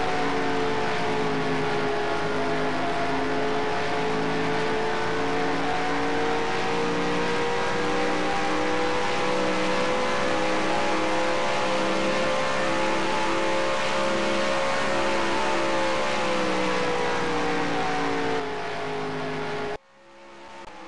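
A V8 stock car engine drones at full throttle.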